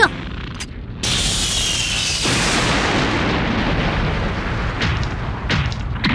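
A loud blast of energy fires with a roaring whoosh.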